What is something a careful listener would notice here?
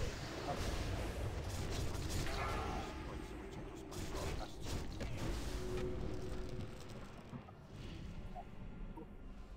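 Magic spell effects whoosh and crackle in a game battle.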